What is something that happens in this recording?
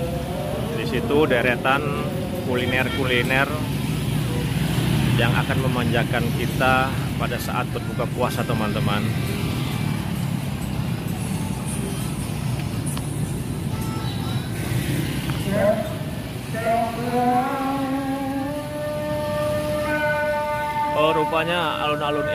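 Motorbikes and cars drive past on a busy street.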